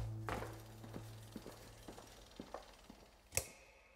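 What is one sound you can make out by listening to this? A bicycle's freewheel ticks and rattles as it is pushed along in an echoing room.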